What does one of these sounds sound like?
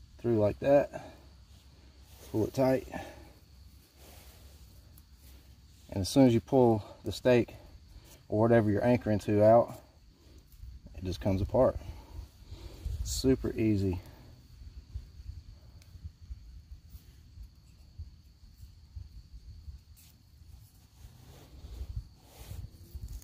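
A cord rustles softly.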